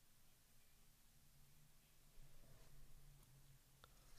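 A trading card rustles softly as it is handled.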